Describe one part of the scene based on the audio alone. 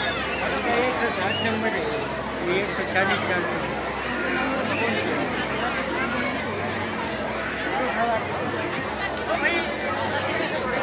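A crowd of men and women chatter loudly nearby, in a busy echoing hall.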